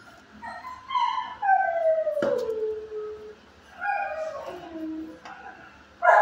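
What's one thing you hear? A dog whines in long, falling cries.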